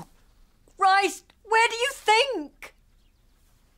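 An elderly woman speaks with emotion, close by.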